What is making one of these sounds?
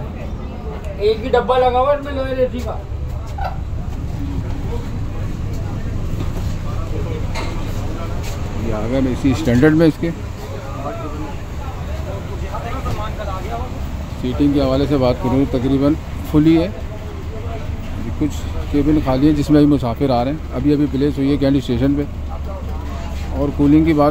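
A man speaks close by, with animation.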